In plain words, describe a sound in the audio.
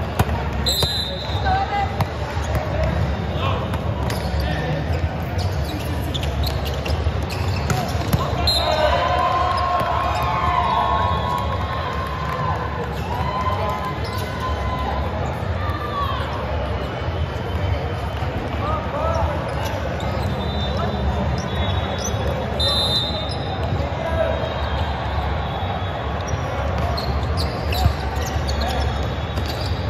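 A volleyball is hit in play, thumping in a large echoing hall.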